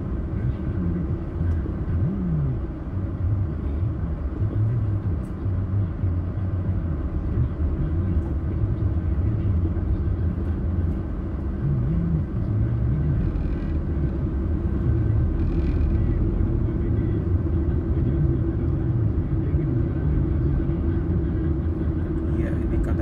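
A car engine hums steadily from inside while driving in traffic.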